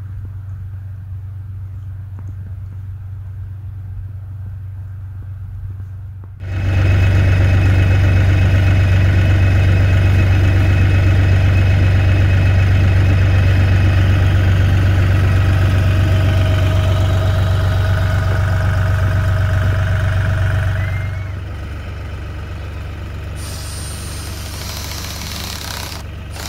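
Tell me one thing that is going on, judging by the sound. A tractor engine drones steadily nearby.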